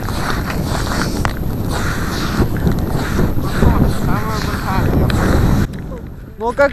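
Skate blades scrape steadily over ice in wind.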